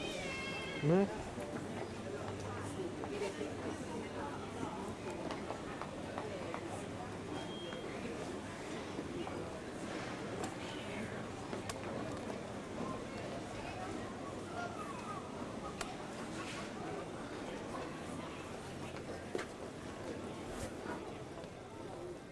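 Voices of men and women murmur quietly in the background.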